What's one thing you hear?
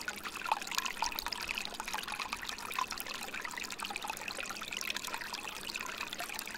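Water trickles and splashes steadily into a pool.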